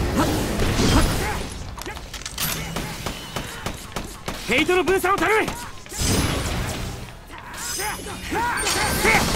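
Energy swords swish through the air.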